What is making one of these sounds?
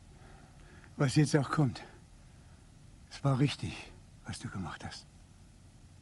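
An elderly man speaks gruffly in reply, close by.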